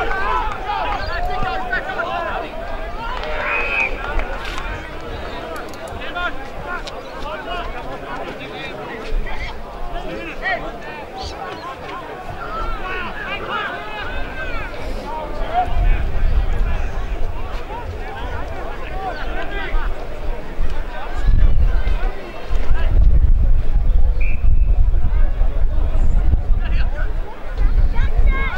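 Young men shout and call to each other across an open field.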